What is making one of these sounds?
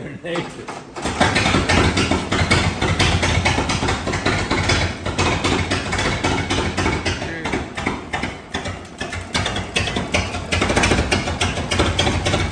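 An old engine starts up and runs with a loud, fast chugging rattle.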